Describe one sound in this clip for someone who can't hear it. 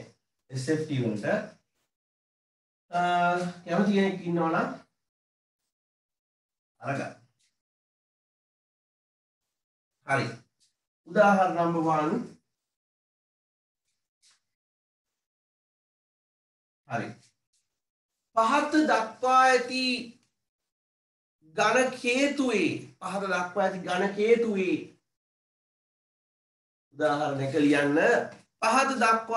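A young man speaks calmly close by, in short bursts with pauses.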